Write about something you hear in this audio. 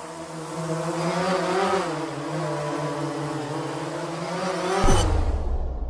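A drone's propellers whir steadily as it hovers.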